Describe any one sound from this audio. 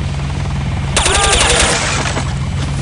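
A rifle fires a short, loud burst in an echoing corridor.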